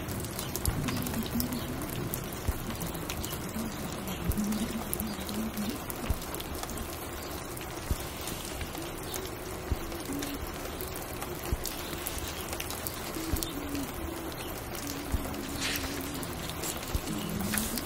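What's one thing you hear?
Soft music with a slow, steady beat plays from a record player.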